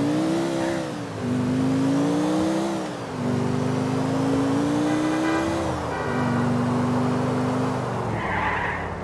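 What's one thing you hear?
A car engine revs up and drops in pitch as it shifts through gears.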